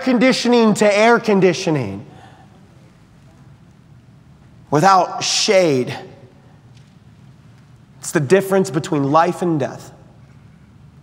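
A man speaks calmly and deliberately through a microphone, in short phrases with pauses.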